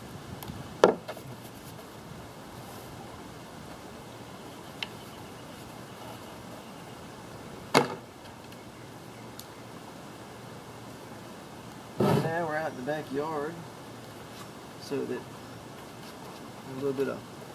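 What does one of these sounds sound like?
A paintbrush spreads epoxy onto wood.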